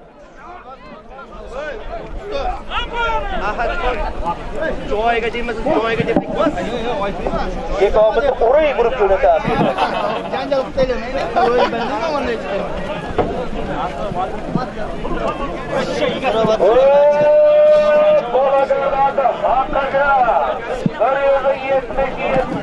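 A large crowd of men shouts and calls out outdoors.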